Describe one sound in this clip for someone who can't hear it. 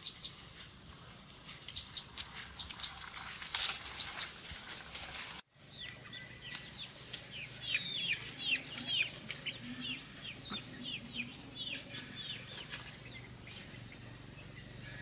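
Footsteps rustle through grass.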